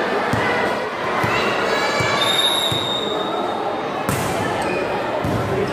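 A volleyball bounces on the floor with dull thuds.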